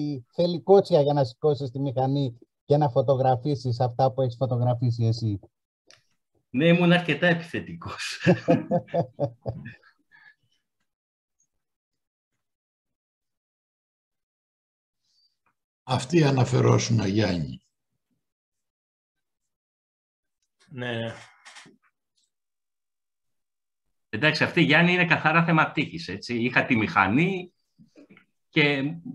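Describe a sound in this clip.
A man speaks calmly through an online call, with pauses.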